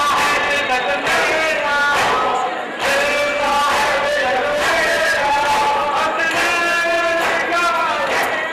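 An elderly man chants loudly in a mournful voice.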